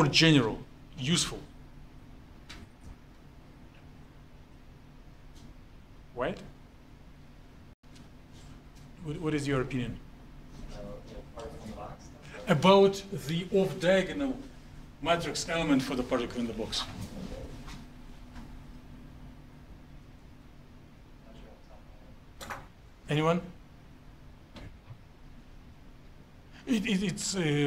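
A man lectures nearby, speaking in short bursts with pauses.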